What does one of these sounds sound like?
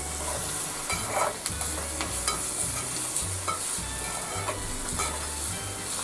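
A spoon stirs and scrapes through frying vegetables.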